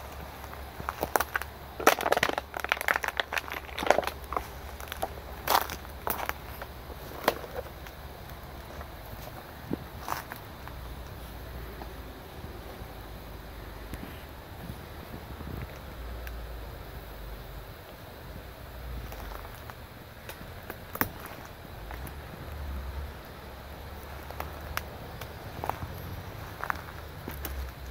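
Twigs and branches rustle and snap close by.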